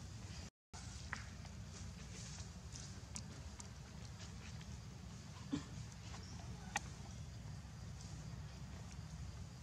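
A baby monkey nibbles and chews food.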